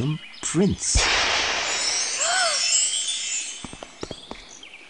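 A magical shimmering sparkle sound swells and fades.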